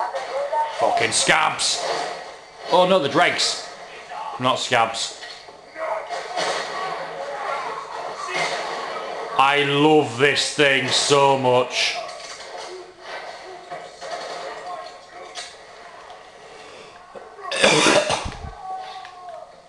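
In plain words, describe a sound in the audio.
Guns fire in loud bursts of shots.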